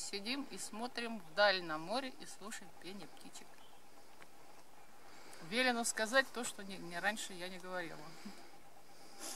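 A middle-aged woman speaks calmly close by.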